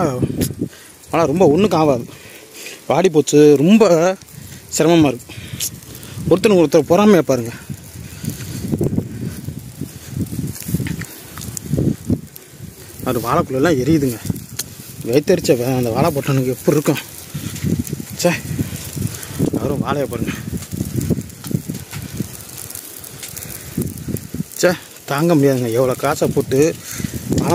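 Burning grass crackles and pops outdoors.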